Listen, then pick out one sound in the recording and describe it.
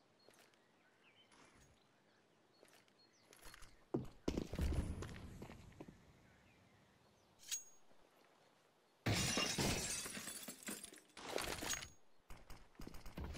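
Footsteps tap on stone pavement.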